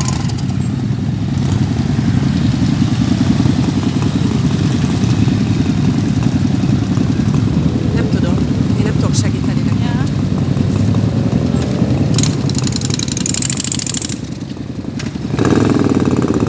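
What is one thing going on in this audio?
Motorcycle engines rumble and idle loudly nearby.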